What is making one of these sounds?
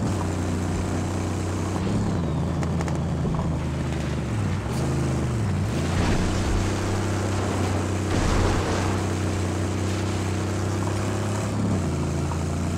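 A car engine roars steadily, rising and falling in pitch as it revs.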